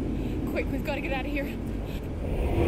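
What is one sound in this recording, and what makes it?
A young woman calls out urgently.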